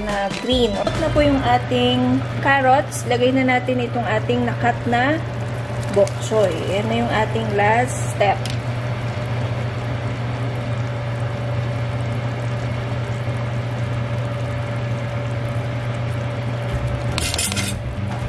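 Soup simmers and bubbles gently in a pot.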